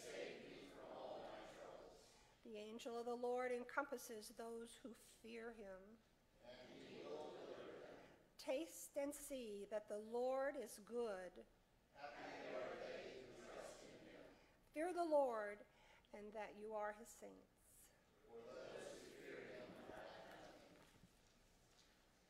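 An older woman speaks calmly through a microphone in an echoing room.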